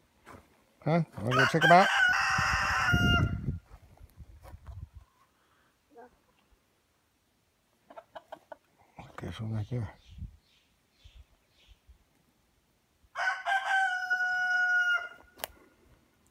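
A rooster crows loudly nearby.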